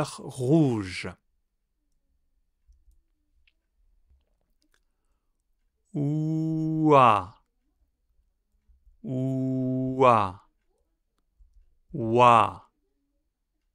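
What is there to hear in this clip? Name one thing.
A man speaks clearly and slowly into a close microphone, pronouncing single sounds with long pauses between them.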